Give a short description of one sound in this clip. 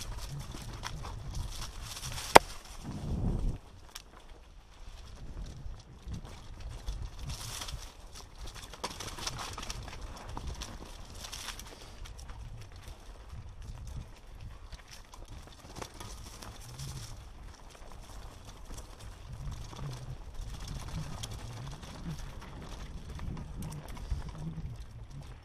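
Mountain bike tyres rumble and rattle over a rocky dirt trail.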